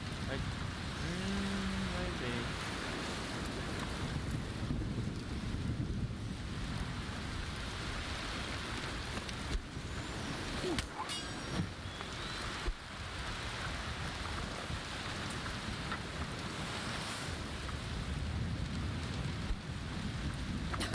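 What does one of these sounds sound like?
Heavy rain pours steadily, with wind.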